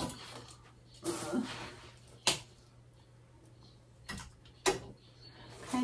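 Clothes hangers clack and rattle on a rail.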